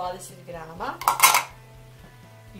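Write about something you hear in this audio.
A metal bowl clatters as it is set down into a plastic bowl.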